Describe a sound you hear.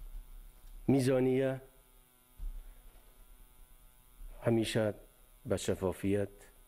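An older man speaks slowly and formally into microphones, pausing between phrases.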